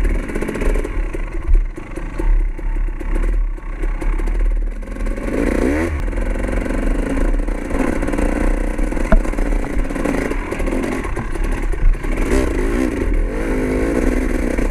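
A motorbike engine hums and revs up and down.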